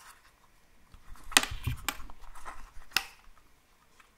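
A small plastic case clicks and clatters in someone's hands.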